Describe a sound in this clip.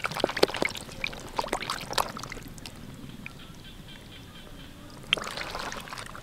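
A hand rummages through fish in water.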